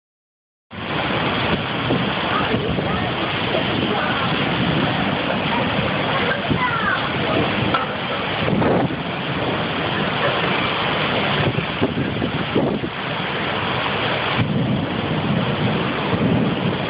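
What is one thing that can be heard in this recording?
Strong wind roars and gusts against the microphone outdoors.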